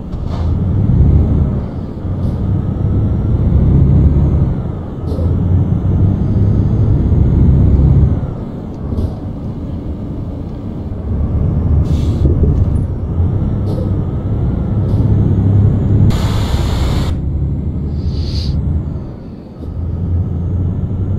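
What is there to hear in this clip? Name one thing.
A heavy truck engine rumbles and surges as it drives.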